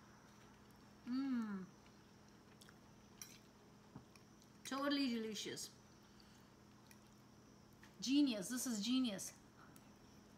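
A woman hums with pleasure while tasting food.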